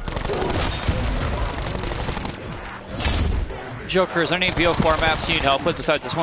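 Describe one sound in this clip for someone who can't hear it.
Gunshots bang in quick bursts.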